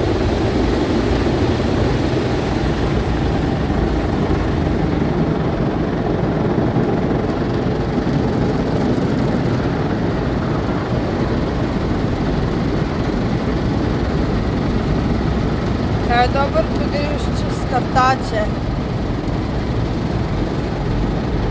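Water sprays and drums on a car's windscreen, heard from inside the car.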